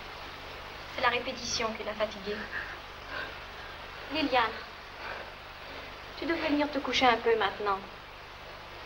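A woman speaks pleadingly and emotionally.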